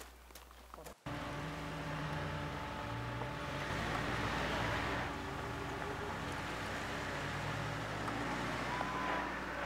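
A truck engine rumbles as it drives along.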